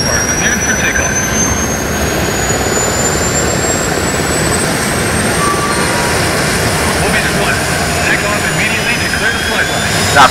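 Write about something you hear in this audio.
A jet engine roars loudly and steadily, its whine slowly rising in pitch.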